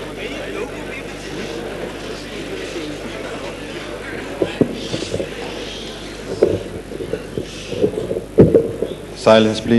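A crowd murmurs and chatters in a large hall.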